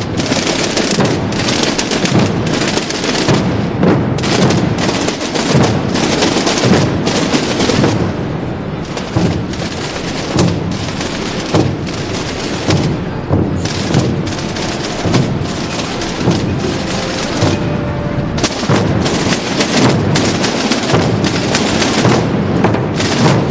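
A large group of drums beats a loud, steady marching rhythm outdoors.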